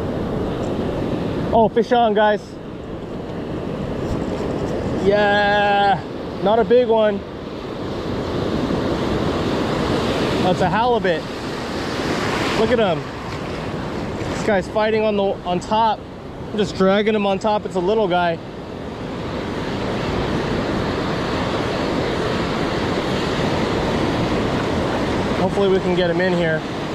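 Waves break and wash steadily onto a shore.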